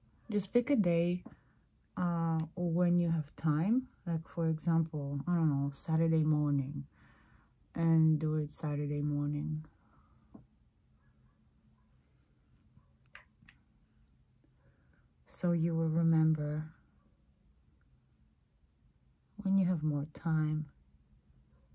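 A middle-aged woman talks calmly and close to a microphone, with pauses.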